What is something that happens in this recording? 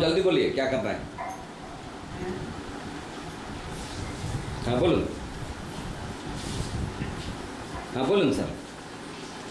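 A man speaks close by in short bursts.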